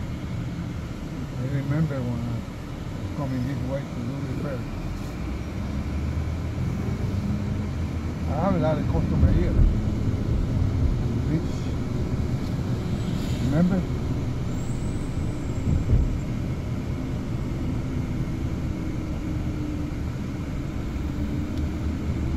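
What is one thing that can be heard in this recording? Car traffic passes on a city street outdoors.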